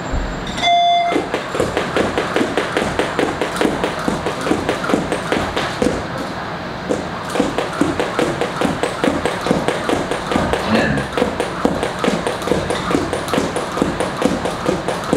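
Sneakers thump lightly on a padded floor with each jump.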